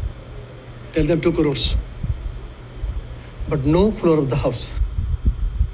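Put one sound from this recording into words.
A film's dialogue plays through a small speaker.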